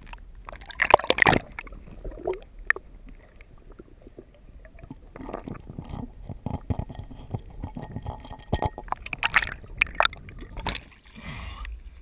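Water sloshes and bubbles, muffled, around an underwater microphone.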